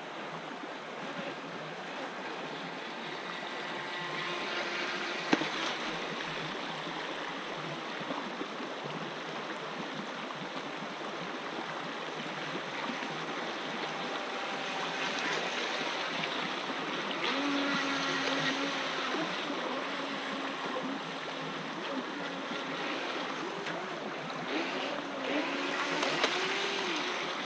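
A shallow stream rushes and burbles over stones.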